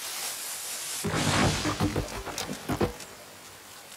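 A heavy wooden log thumps and knocks into place.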